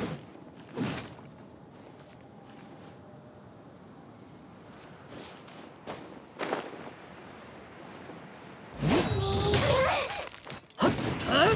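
Rocks burst and crumble with loud crashes.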